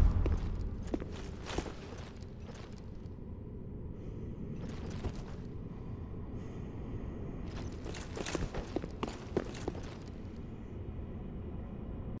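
Armored footsteps clank on stone in a large echoing hall.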